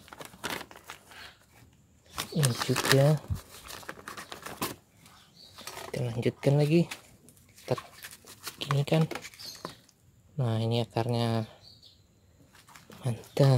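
Soil crumbles and scrapes under fingers.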